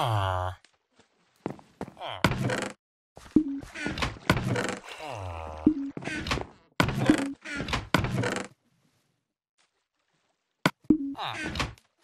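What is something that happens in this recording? A wooden chest creaks open and shut.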